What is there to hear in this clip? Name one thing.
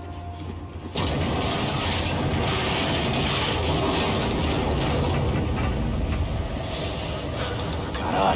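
Wind roars steadily outdoors in a snowstorm.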